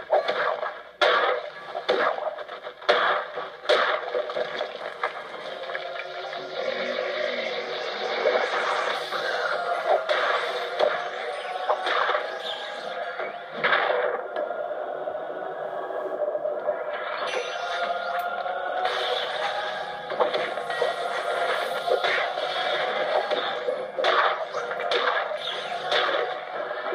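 Magic blasts and hits burst out sharply from a game.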